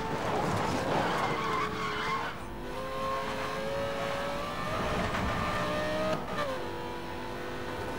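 Tyres hiss on the road at speed.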